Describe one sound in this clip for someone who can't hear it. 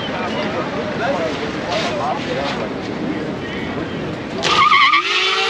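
A crowd of people talk and shout outdoors.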